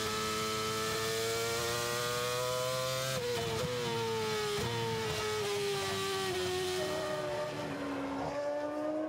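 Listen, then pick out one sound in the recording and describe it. Tyres hiss through spray on a wet track.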